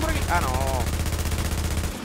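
A rifle fires a burst of gunshots.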